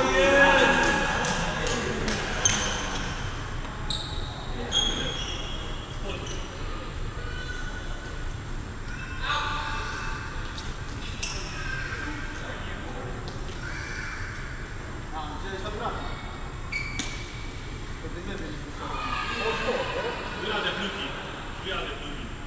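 A man talks and calls out loudly across a large echoing hall.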